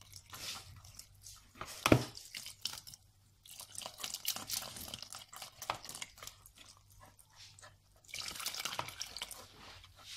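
Milk pours in a thin stream into batter.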